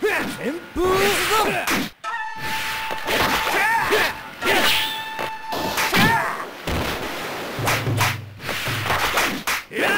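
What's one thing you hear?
Swords clash and slash in a fighting game.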